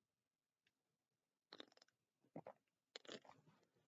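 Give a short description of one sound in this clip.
A man gulps a drink from a can.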